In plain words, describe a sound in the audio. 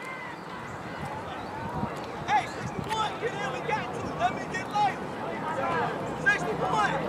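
Children shout and cheer nearby outdoors.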